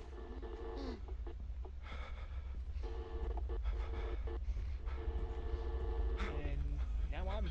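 A woman groans and moans close by.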